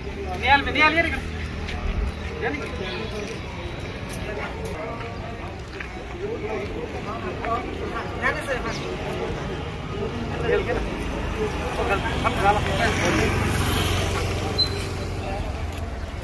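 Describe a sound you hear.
Several men talk at once nearby, with animation.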